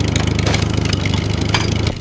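Wooden crates smash and splinter.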